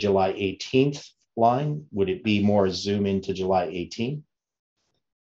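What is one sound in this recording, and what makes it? An older man speaks calmly and closely into a microphone.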